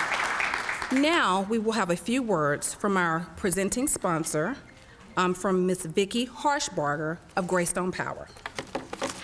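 A woman speaks calmly through a microphone in a large room.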